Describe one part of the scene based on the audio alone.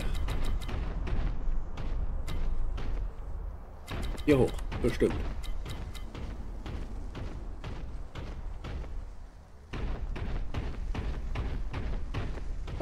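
Heavy footsteps thud steadily on stone.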